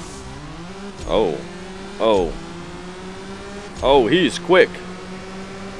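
A racing car engine's pitch sweeps sharply at each gear change.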